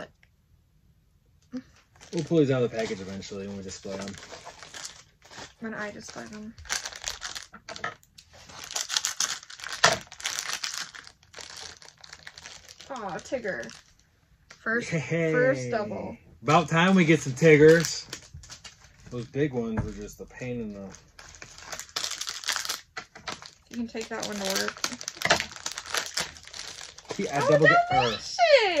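Plastic wrappers crinkle and rustle.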